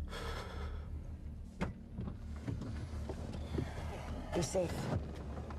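A low engine hum drones steadily inside a car.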